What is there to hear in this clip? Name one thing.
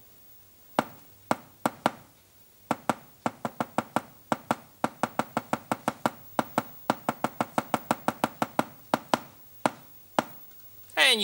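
Knuckles knock on a wooden block in an uneven rhythm.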